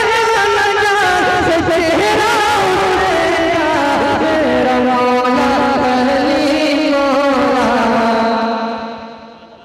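A young man sings loudly and passionately through a microphone.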